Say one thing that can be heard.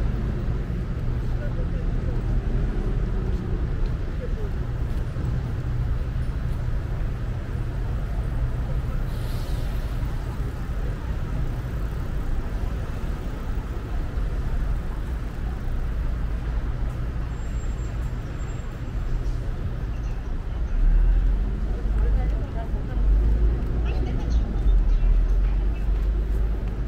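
City traffic hums steadily nearby.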